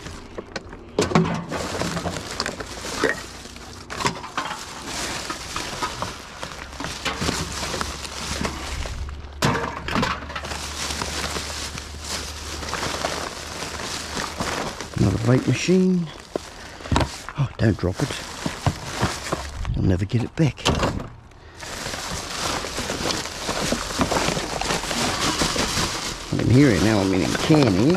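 Plastic bin bags rustle as they are rummaged through.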